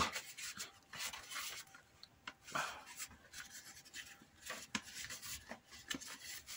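A piece of leather rustles and scrapes against a cutting mat as it is handled.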